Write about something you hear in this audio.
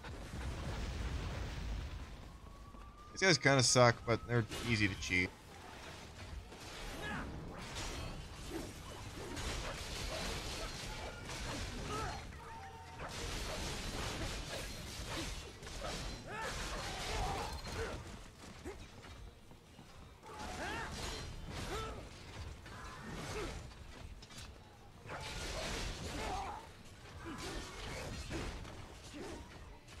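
Metal blades clash and slash in quick bursts of fighting.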